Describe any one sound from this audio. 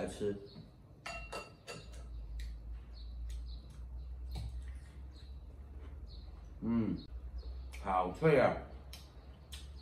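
A man chews food with crunching sounds.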